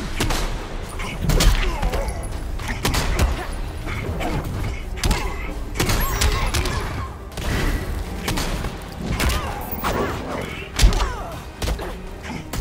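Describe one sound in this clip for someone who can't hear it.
A woman grunts and cries out with effort.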